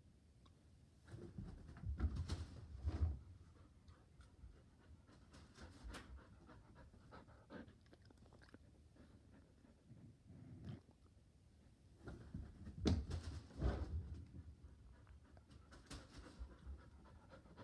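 A dog's paws thump and patter on a carpet as it runs close by.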